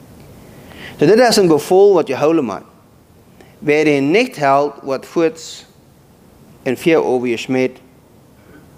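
A middle-aged man speaks calmly into a microphone, heard through loudspeakers in a large room.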